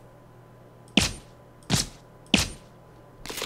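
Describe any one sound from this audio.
A silenced pistol fires a few sharp shots.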